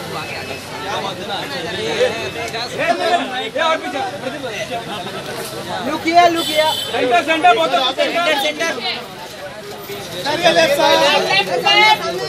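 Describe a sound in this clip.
Photographers shout loudly close by.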